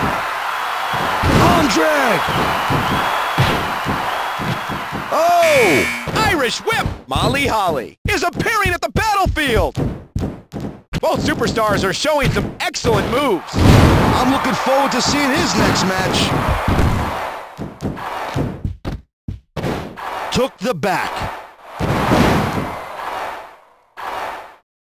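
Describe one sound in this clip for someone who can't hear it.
Punches and slams thud repeatedly.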